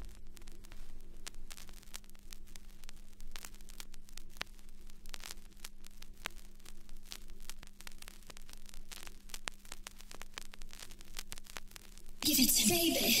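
A vinyl record crackles and pops as it spins.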